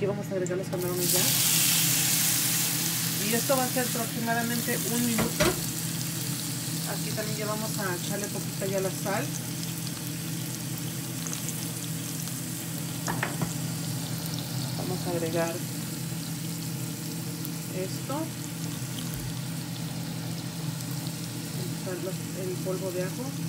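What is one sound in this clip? Shrimp hiss and sizzle loudly as they drop into a hot frying pan.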